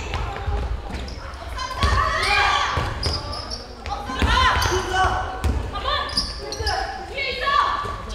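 Sneakers squeak sharply on a court in an echoing gym.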